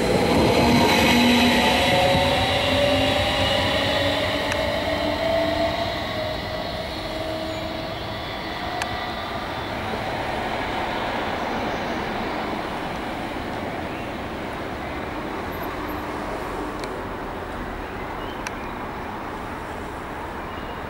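Train wheels rumble on the rails.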